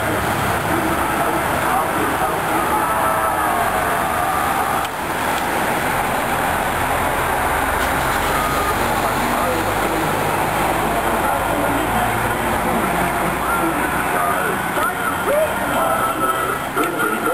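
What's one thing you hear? A prop's speaker plays a deep, spooky man's voice talking slowly.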